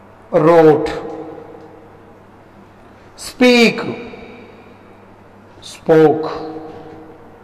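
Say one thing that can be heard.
A man speaks slowly into a microphone, saying short words with long pauses in between, in an echoing room.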